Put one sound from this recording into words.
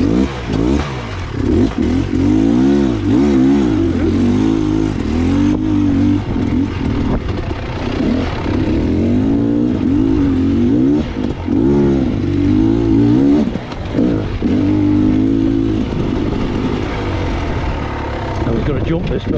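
Tyres crunch over loose stones and gravel.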